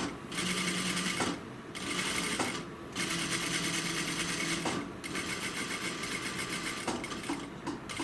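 A sewing machine whirs in quick bursts of stitching.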